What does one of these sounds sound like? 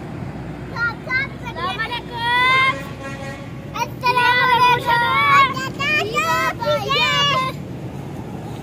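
Children shout and cheer excitedly close by.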